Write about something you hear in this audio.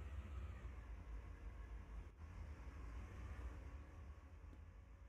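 A diesel locomotive engine rumbles low and steady nearby.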